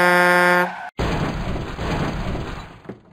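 A truck crashes and rolls over with rumbling noise.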